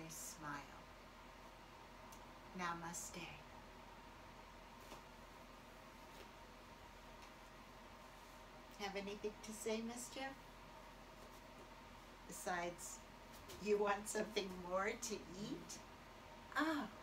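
An older woman talks calmly, close by.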